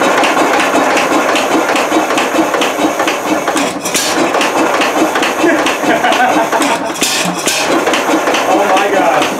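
A small engine runs with a loud, steady chugging.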